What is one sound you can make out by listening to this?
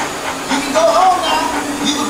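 A playful cartoon voice talks with animation through a loudspeaker.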